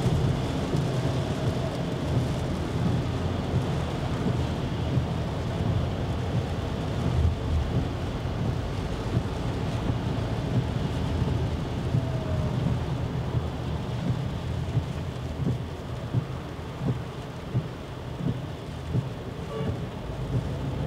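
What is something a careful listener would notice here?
A car's tyres roll on a wet road with a steady low rumble from inside the car.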